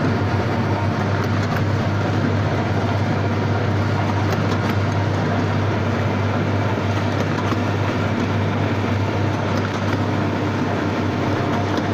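Cartons clatter as they slide along a machine chute.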